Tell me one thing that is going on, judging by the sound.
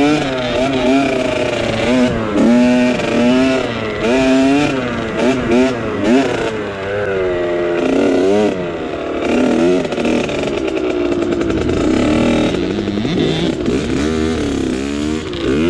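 A dirt bike engine revs up and down at close range.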